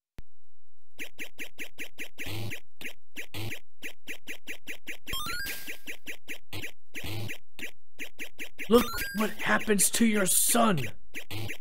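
Retro video game sound effects beep in a quick, steady rhythm.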